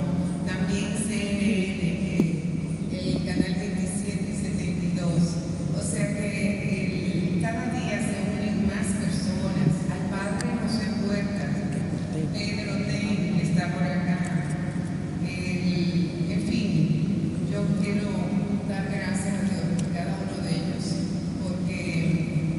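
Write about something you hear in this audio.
A middle-aged woman speaks calmly into a microphone, heard through loudspeakers in an echoing hall.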